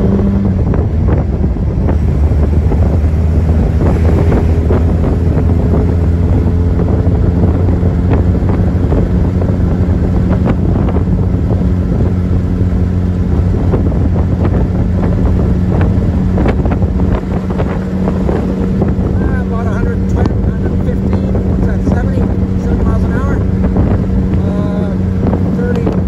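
An old car's engine rumbles steadily close by as it drives along.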